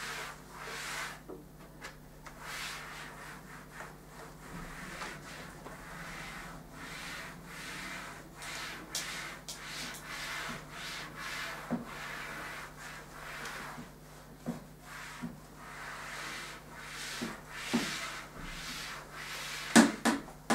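An eraser rubs across a chalkboard in long swishing strokes.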